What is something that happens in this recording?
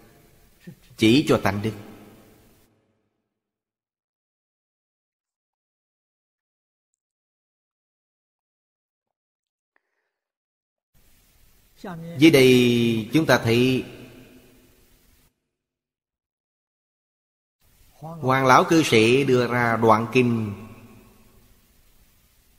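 An elderly man speaks calmly with long pauses, close to a microphone.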